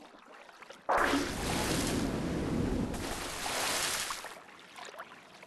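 Water splashes loudly as a shark bursts through the surface.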